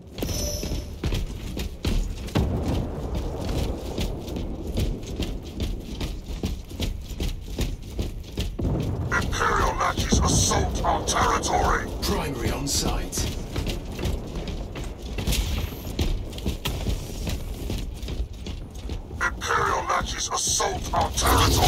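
Heavy armored footsteps thud on stone.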